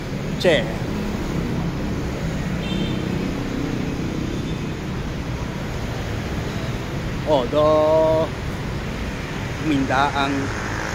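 Motorbike traffic rumbles past steadily on a nearby road.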